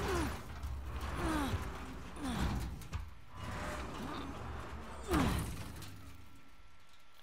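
A heavy metal door scrapes and rumbles as it slides open.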